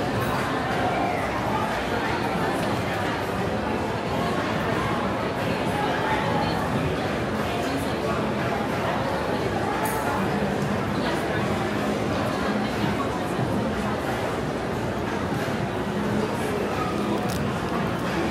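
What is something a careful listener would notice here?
A crowd of shoppers chatters all around in a large, echoing indoor space.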